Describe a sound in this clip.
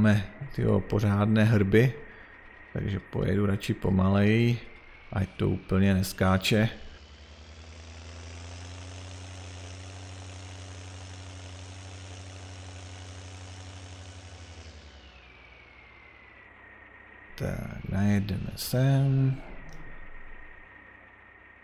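A tractor engine hums steadily, swelling louder for a while and then easing off.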